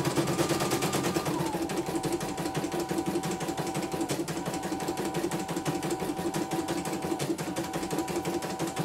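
An embroidery machine stitches with a fast, steady rattle and a motor whine.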